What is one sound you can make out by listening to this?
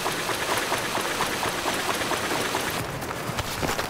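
Water splashes and churns.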